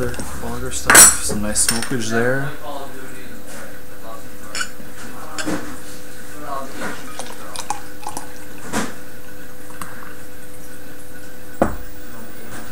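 A glass bottle clinks against a hard surface.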